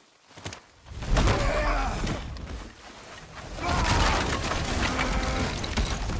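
An axe smashes through wood with a crack.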